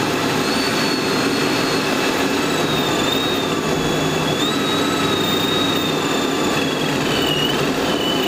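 Wind rushes past a car at speed.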